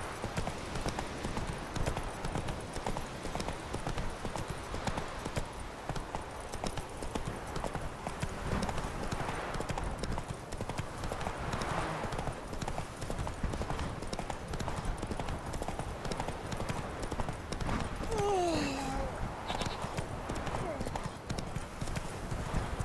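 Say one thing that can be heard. Horse hooves thud rapidly on the ground at a gallop.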